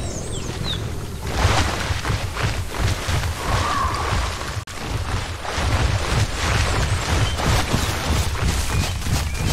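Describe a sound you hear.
A large creature's heavy footsteps thud on soft ground.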